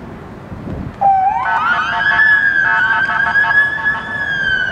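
A siren wails loudly, rising then holding.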